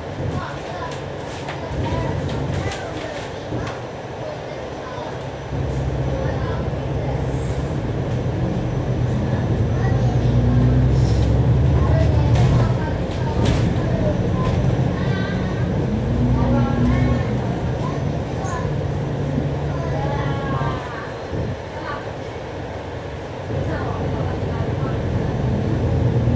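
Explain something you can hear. A diesel double-decker bus engine rumbles as the bus drives through town.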